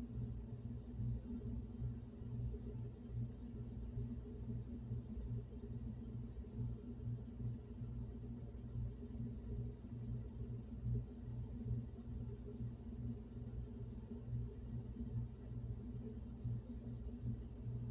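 A heating vent blows air with a steady low hum and rumble.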